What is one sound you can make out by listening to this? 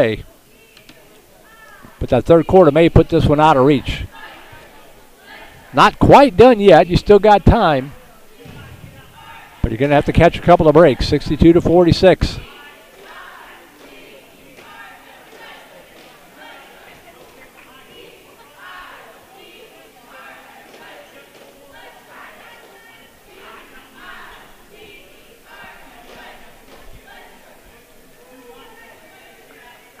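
A crowd murmurs softly in a large echoing gym.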